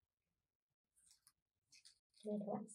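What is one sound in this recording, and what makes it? Paper rustles softly as it is folded.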